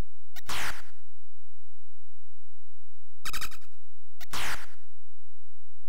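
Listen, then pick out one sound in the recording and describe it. A retro computer game plays short, harsh hissing sound effects that sweep downward.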